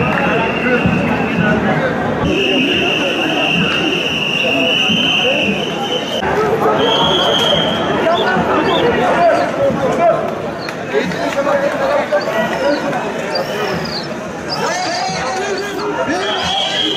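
A large crowd of men and women chatters and calls out outdoors.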